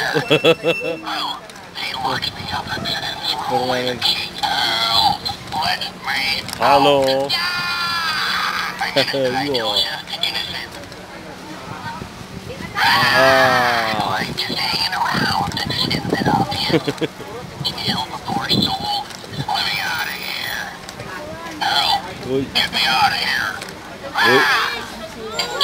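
A toy skeleton cackles and talks in a spooky, distorted electronic voice.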